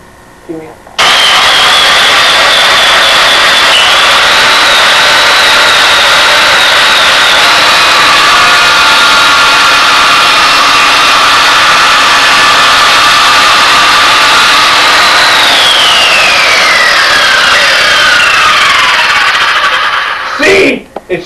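A circular saw whines loudly at full speed, then winds down.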